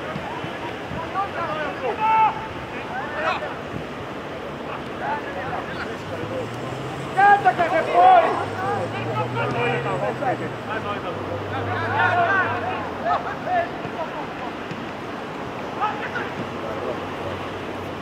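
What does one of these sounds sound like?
Men shout and call to each other in the distance across an open field.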